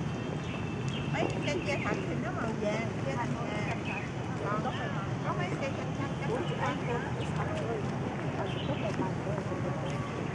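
Elderly men and women chat casually nearby outdoors.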